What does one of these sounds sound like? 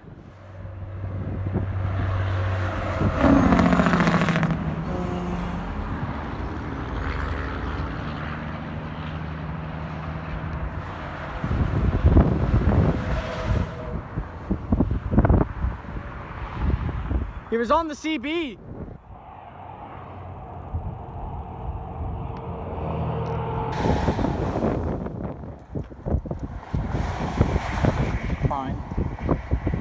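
Heavy trucks and cars roar past on a highway.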